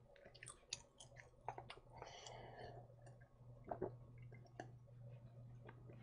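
A young man sips a drink and swallows.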